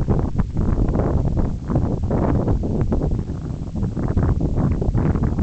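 Strong wind gusts loudly across open ground, buffeting the microphone.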